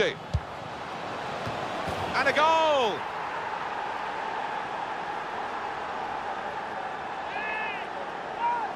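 A stadium crowd cheers and roars louder.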